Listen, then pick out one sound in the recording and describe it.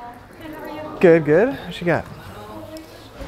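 A young woman talks.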